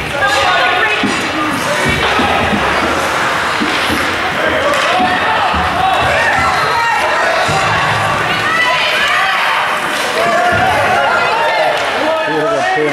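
Many people chatter and call out in a large echoing rink.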